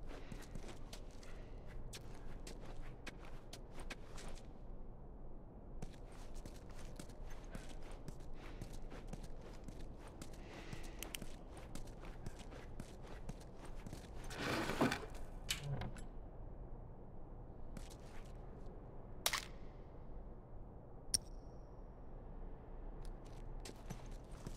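Footsteps crunch over debris and broken glass.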